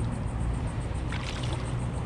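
A fish splashes in the water beside a boat.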